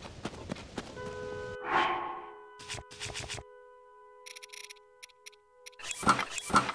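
Soft chimes and clicks sound as menu items are selected.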